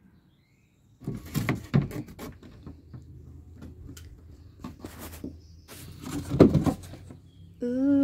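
Plastic clips click and knock as a door panel is pried off.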